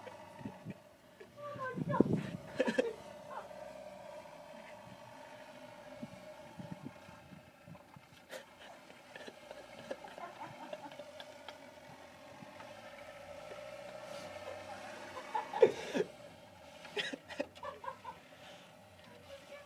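A diesel van's engine revs as it tries to pull away in snow.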